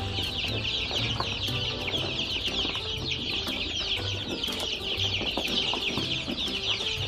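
Chicks peck at grain with soft taps.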